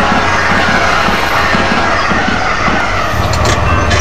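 A train rumbles past at a crossing.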